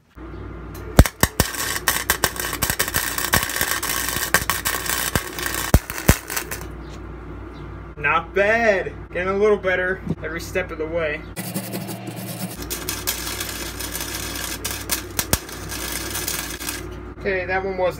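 A welding arc crackles and sizzles loudly.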